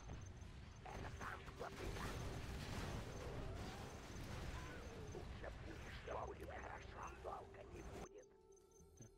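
Explosions boom and rumble in a battle.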